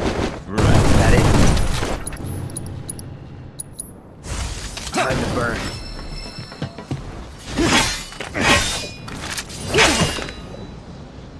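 Blades clash with sharp metallic hits.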